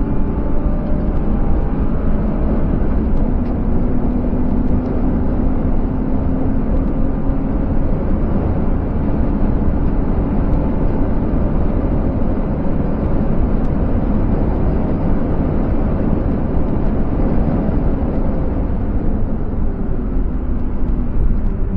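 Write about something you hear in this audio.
Wind rushes and buffets against the car at high speed.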